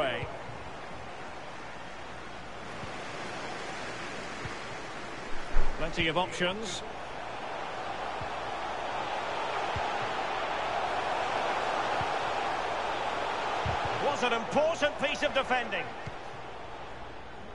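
A stadium crowd roars steadily, swelling louder and then easing off.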